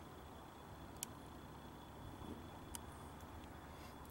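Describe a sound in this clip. A small tripod taps down on pavement.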